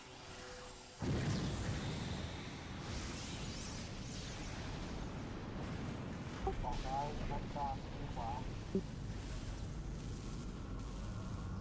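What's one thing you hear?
A huge creature lets out a deep, rumbling roar.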